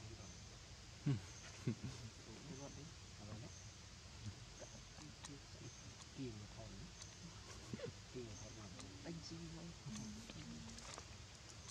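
A baby monkey squeaks and whimpers softly.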